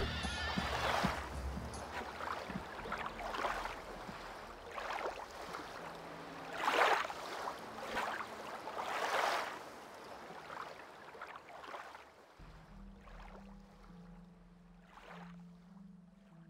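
Footsteps pad steadily over grass.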